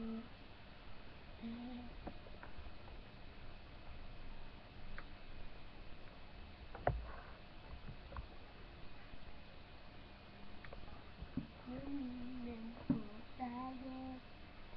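A young boy speaks softly and close by, through a webcam microphone.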